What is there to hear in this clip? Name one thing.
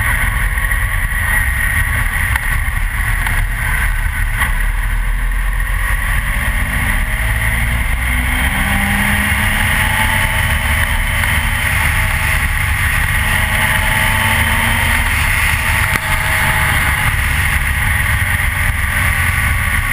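Wind roars loudly past a moving motorcycle.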